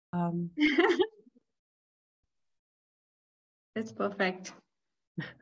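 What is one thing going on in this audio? A young woman talks cheerfully over an online call.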